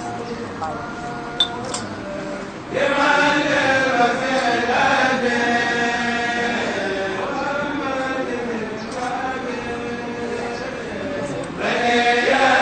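A group of men chant together in unison, close by.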